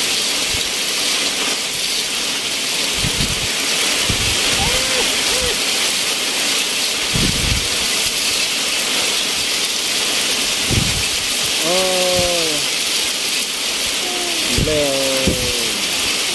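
Rain falls steadily outdoors with a constant hiss.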